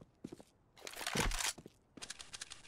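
A rifle is drawn with a sharp metallic click.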